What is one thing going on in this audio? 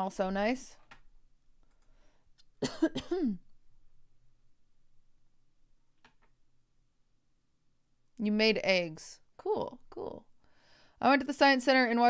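A young woman speaks expressively and close into a microphone, in short bursts.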